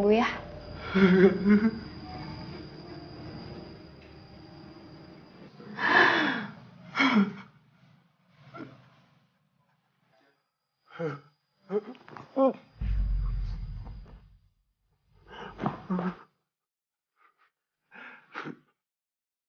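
A man sobs and wails in anguish close by.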